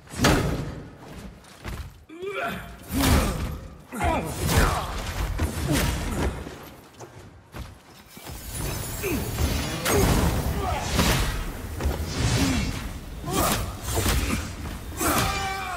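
Heavy weapon blows strike and clang in a fight.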